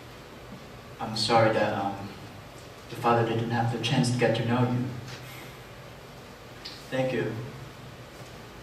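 A young man speaks loudly and clearly in a room with a slight echo, in short lines with pauses.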